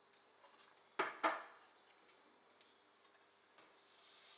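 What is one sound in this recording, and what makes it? Chopped onions slide off a plastic board into a pan.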